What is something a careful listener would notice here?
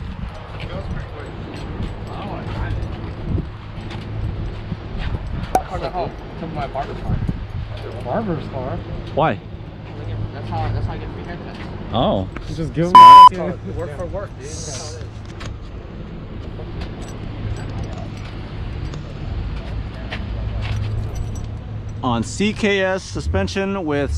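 Men talk casually nearby outdoors.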